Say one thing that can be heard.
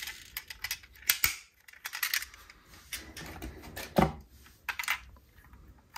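Toy cars clatter against each other as a hand rummages through a box.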